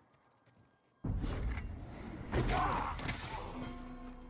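A sword slashes and clashes in a fight.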